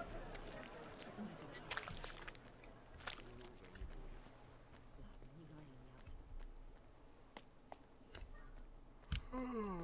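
Footsteps tread on a stone path.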